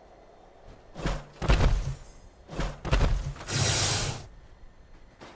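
Loose objects crash and clatter in several loud bursts.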